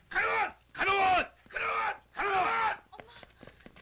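A man shouts loudly and urgently.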